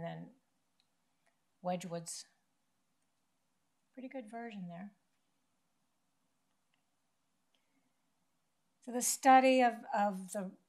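A woman lectures calmly through a microphone, pausing between phrases.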